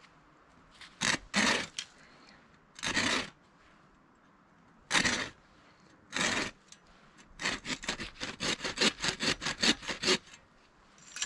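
A folding saw cuts through a branch with quick rasping strokes.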